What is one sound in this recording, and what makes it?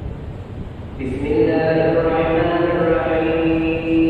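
A man chants loudly through a loudspeaker in a large echoing hall.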